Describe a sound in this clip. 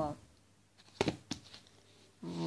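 A hand taps on a hard book cover.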